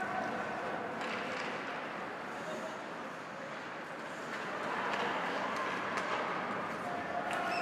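Hockey sticks clack against a puck in an echoing arena.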